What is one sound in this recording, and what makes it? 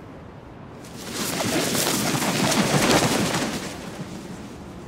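A flock of birds takes off with a loud flutter of wings.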